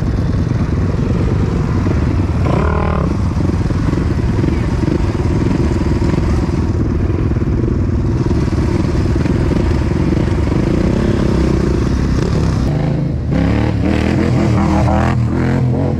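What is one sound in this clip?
A quad bike engine revs nearby.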